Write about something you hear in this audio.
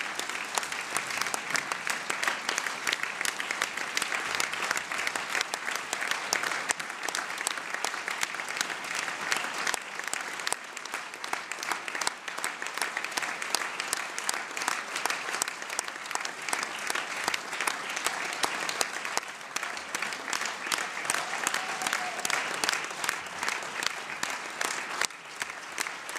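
A large crowd applauds steadily in a big echoing hall.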